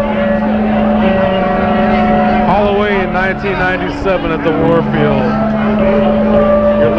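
A bass guitar rumbles underneath.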